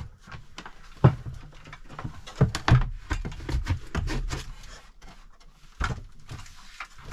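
Wood knocks and scrapes as a timber post is shifted into place.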